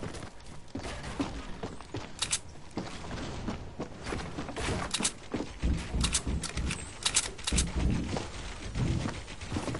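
Wooden walls click and thud as they are built in a video game.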